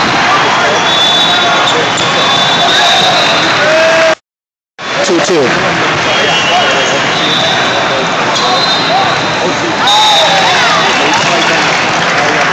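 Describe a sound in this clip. Sneakers squeak on a sports court floor.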